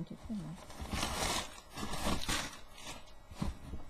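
Plastic wrapping crinkles and rustles as it is handled.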